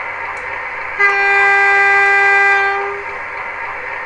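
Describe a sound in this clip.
A model locomotive sounds its horn in a long, steady blast.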